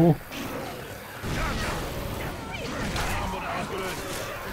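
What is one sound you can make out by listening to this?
An explosion booms and fire roars.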